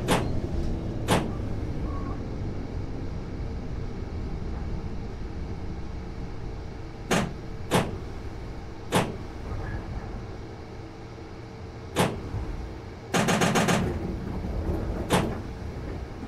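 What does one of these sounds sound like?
Train wheels clack sharply over rail joints at intervals.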